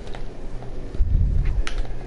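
Footsteps thud on dirt as a game character runs.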